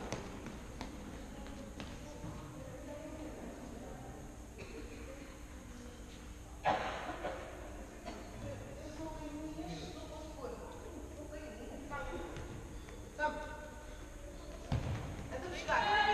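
Players shout to each other across the echoing hall.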